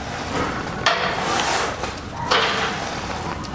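A man breathes out hard with effort.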